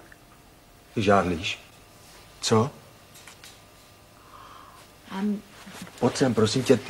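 A woman speaks softly and sadly, close by.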